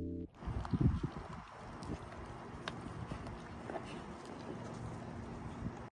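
Dogs lap and lick wetly.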